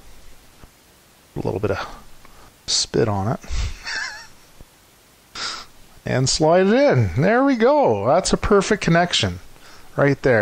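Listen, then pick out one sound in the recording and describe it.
Plastic parts click and scrape together as they are fitted.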